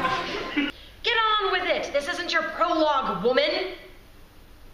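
A young woman speaks dramatically, close by.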